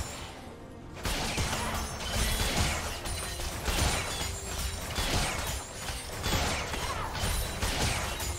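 Video game spells and weapon hits crash and burst in a rapid battle.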